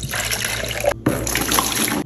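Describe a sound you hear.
Liquid pours into a plastic bucket.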